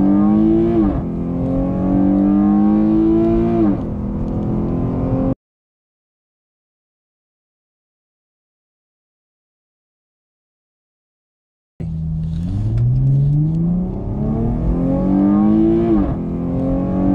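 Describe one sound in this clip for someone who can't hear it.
A car engine's pitch drops sharply at each gear change.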